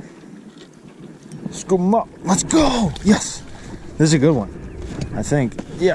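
A fish splashes in the water beside a boat.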